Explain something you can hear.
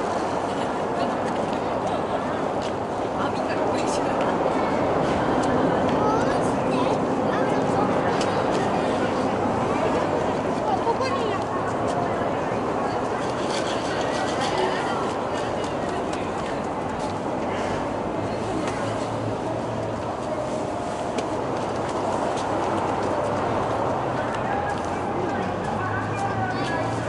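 A roadside crowd cheers and shouts steadily outdoors.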